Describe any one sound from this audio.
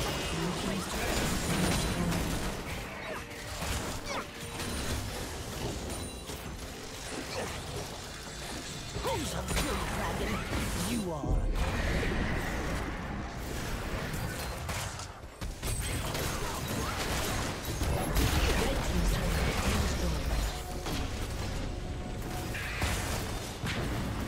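Fantasy battle sound effects clash, zap and boom in quick bursts.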